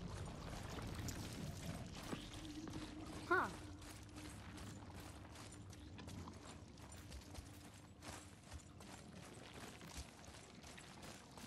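Heavy footsteps crunch on rough ground.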